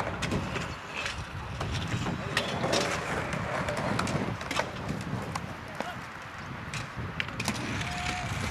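Scooter wheels roll and clatter on a concrete ramp.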